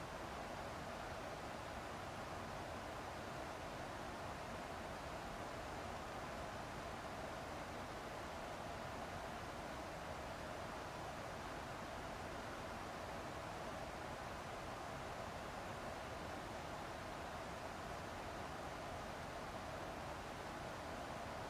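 A jet engine roars steadily in the cabin.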